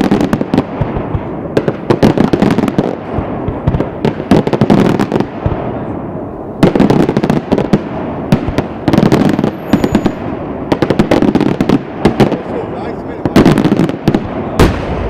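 Fireworks crackle and pop rapidly overhead.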